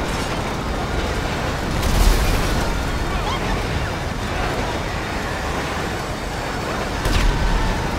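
A freight train rumbles past on the tracks.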